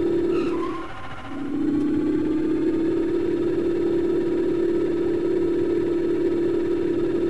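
A machine hums with a steady low drone.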